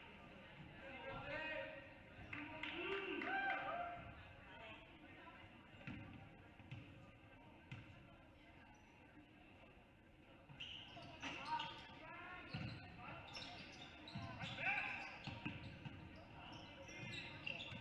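Basketball sneakers squeak sharply on a wooden floor.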